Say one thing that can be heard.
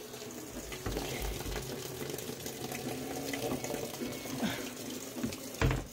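Water pours and splashes into a washing machine drum.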